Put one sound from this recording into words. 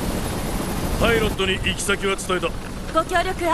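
A man speaks earnestly, close by.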